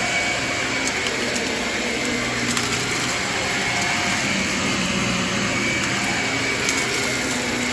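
Grit crackles and rattles up the vacuum cleaner's tube.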